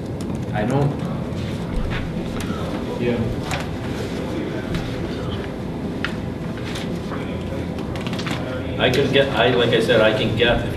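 Papers rustle and crinkle.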